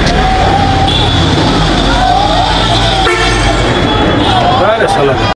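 A crowd of men chatter and call out loudly outdoors.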